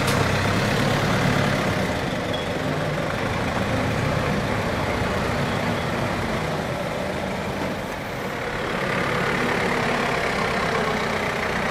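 A forklift engine hums and rumbles nearby.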